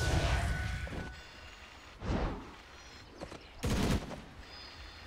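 Magic spells burst and whoosh in a game battle.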